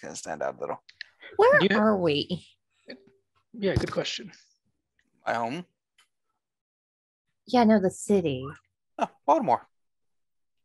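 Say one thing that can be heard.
A man speaks with animation over an online call, in bursts with pauses.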